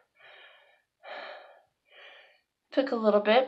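A young woman breathes out heavily close by.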